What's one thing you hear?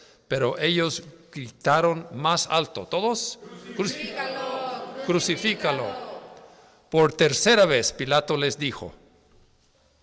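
An older man speaks with animation through a microphone.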